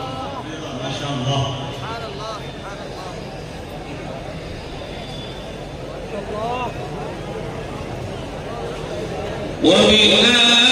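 An elderly man speaks slowly and earnestly through a microphone and loudspeakers.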